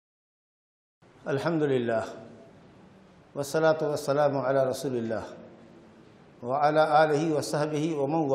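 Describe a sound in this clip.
A middle-aged man speaks calmly and clearly into a microphone.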